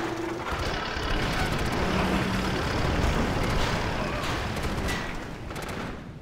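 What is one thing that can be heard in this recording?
Explosions boom and gunfire crackles in a battle.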